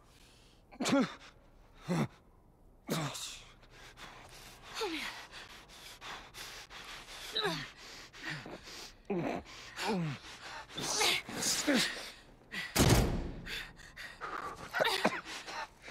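A man groans and gasps in pain up close.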